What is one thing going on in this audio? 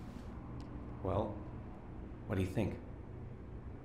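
A man speaks briefly and softly.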